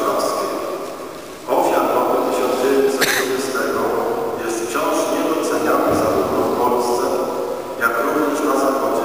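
An elderly man speaks steadily through a microphone in a large echoing hall.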